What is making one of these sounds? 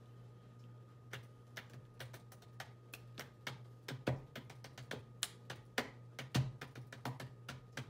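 A pencil taps and scratches on paper close by.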